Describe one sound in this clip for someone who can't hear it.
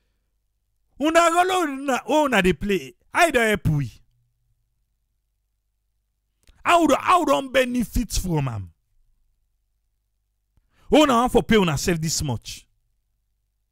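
An elderly man speaks loudly through a microphone, in short bursts with pauses.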